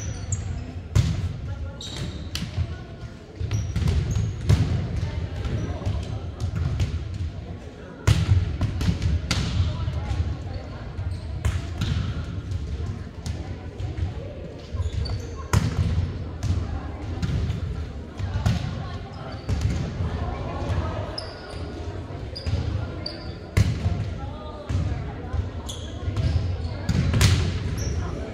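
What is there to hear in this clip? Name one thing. A volleyball thuds as players hit it in a large echoing gym.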